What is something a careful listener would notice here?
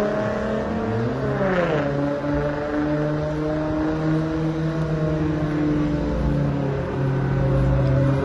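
Racing engines rumble and rev loudly in the distance, outdoors.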